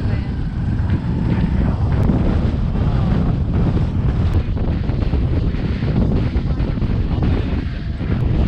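Strong wind blows and rumbles steadily outdoors.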